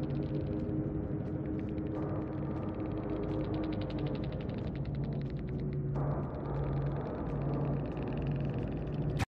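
A score counter ticks rapidly as points tally up.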